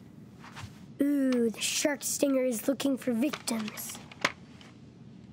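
A boy speaks playfully in a put-on voice, close by.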